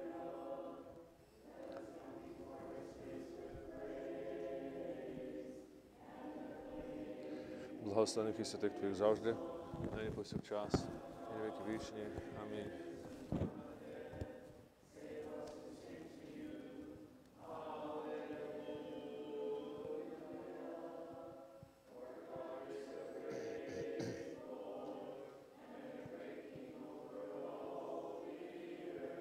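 A group of men and women sings a slow chant in a large, echoing room.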